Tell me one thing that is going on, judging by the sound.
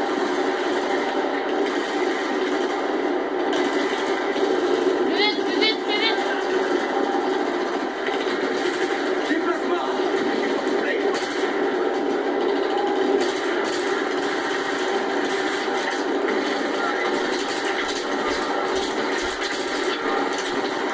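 Rapid gunfire rattles through a television speaker.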